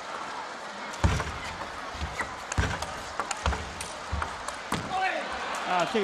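A table tennis ball clicks sharply back and forth off bats and the table.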